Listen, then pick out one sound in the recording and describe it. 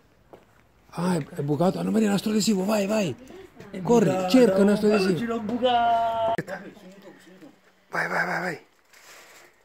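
Young people talk with animation close by.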